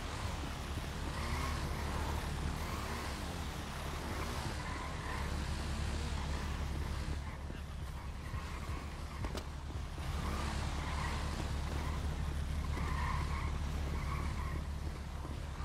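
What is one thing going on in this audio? Footsteps run quickly over pavement and grass.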